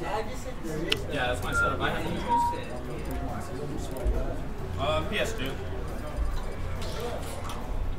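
Short electronic menu blips sound as a cursor moves between choices.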